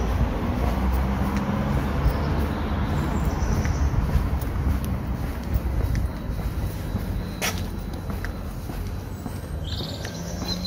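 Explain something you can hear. Footsteps tap on a paved pavement.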